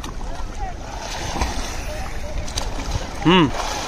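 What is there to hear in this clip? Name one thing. A man splashes in the water.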